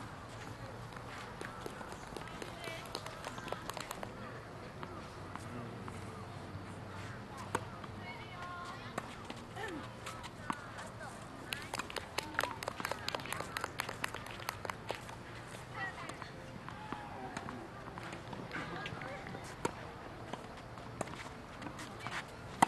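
Young girls chatter nearby.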